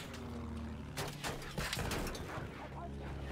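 Explosions burst with loud bangs.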